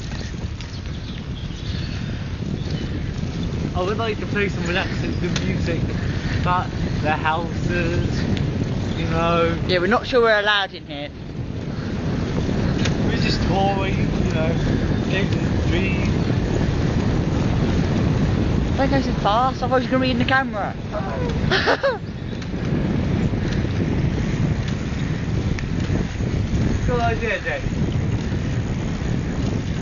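Wind rumbles steadily against the microphone outdoors.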